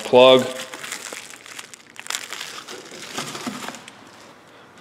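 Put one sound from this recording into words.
Bubble wrap crinkles in a hand.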